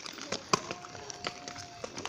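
Horse hooves clop on stony ground.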